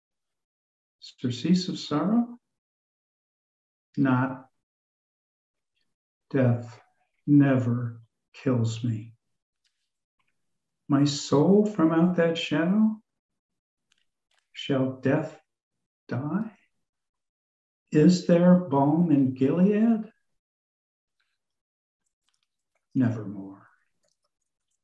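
An elderly man speaks calmly through a headset microphone, in short bursts with pauses.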